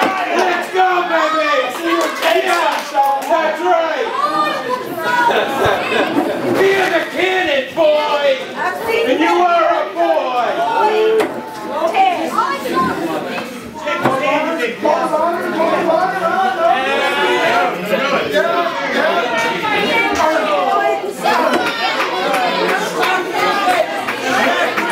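A crowd chatters and calls out in an echoing hall.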